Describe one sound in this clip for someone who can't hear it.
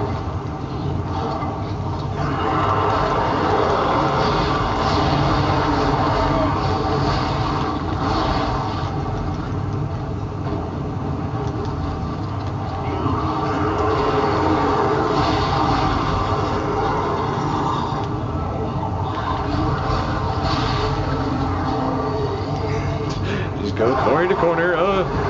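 Gunfire from a video game blasts and crackles.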